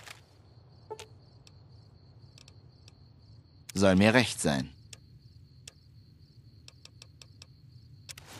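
Short interface clicks sound as game menu items are selected.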